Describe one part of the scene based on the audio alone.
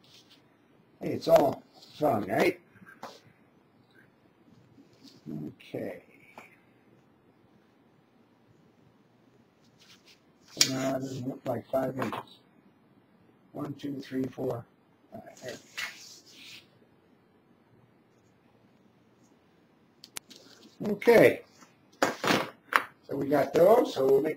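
A man talks calmly close by, in short bursts.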